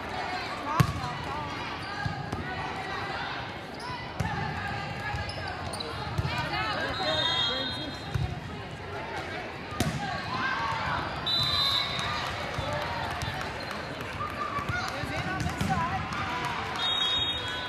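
A crowd of young women and girls chatter and call out in a large echoing hall.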